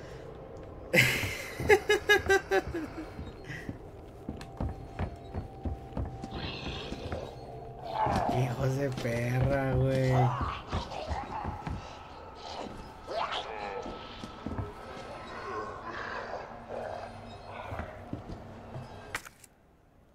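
A young man laughs and talks with animation close to a microphone.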